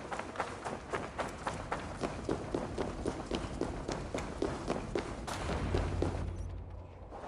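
Footsteps crunch quickly through snow and gravel.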